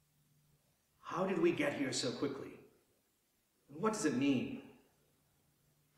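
A man speaks calmly and clearly in a quiet, slightly echoing room.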